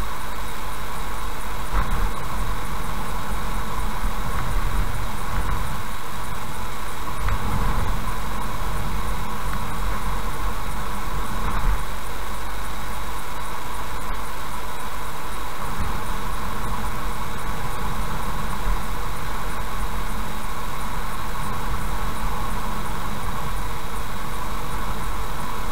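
Tyres hum and rumble steadily on a highway as a car drives along.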